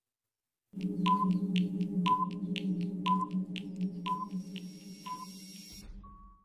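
A countdown timer beeps once each second.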